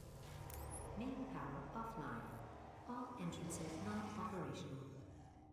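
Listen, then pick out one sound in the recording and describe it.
A young woman talks calmly into a nearby microphone.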